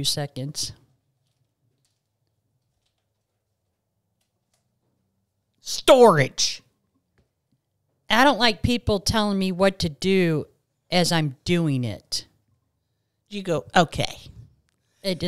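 Another middle-aged woman speaks calmly, close to a microphone.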